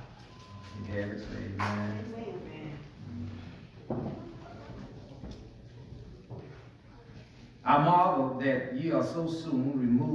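A man speaks calmly into a microphone in an echoing hall.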